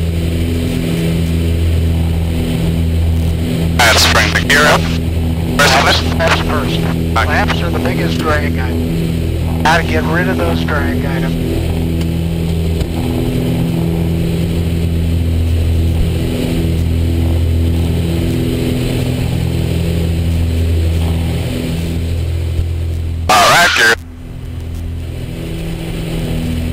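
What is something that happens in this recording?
A small propeller plane's engine drones steadily and loudly from close by.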